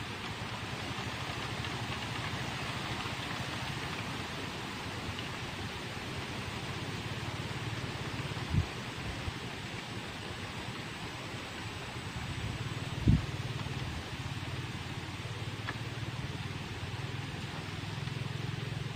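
Water laps softly outdoors.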